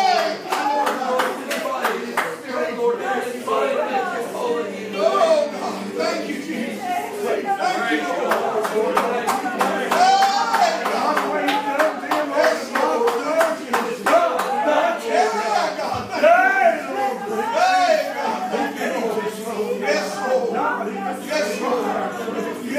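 A man prays loudly and fervently into a microphone, echoing in a room.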